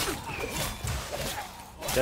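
Swords clash with a metallic ring.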